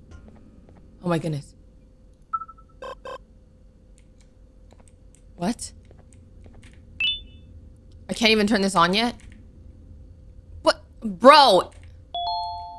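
A young woman exclaims and talks animatedly into a close microphone.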